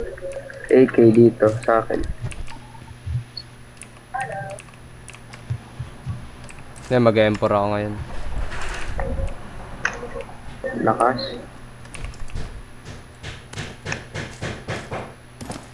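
Items click as they are picked up.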